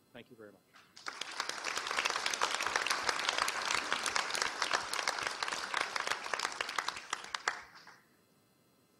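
An audience applauds loudly.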